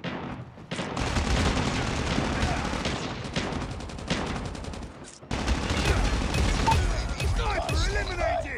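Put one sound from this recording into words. Rapid gunfire rattles loudly in bursts.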